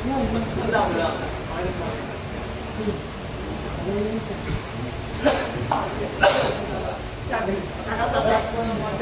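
A crowd of men chatters and murmurs nearby.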